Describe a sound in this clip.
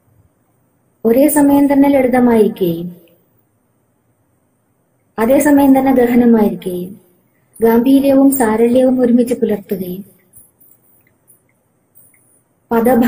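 A middle-aged woman speaks slowly and clearly into a nearby microphone, with pauses between phrases.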